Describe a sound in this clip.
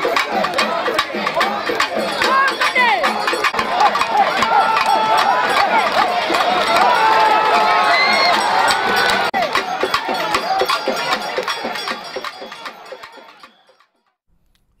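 A large crowd chants and shouts loudly outdoors.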